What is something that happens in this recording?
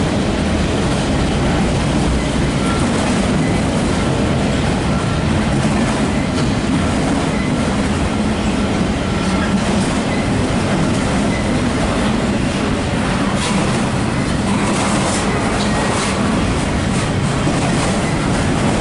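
A freight train rumbles steadily past, close by.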